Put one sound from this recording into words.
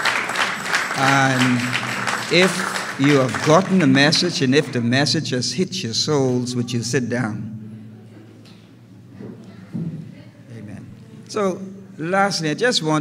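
A middle-aged man speaks steadily through a microphone, echoing in a large hall.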